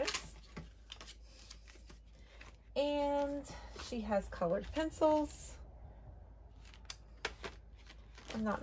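Small items tap and rustle as they are handled.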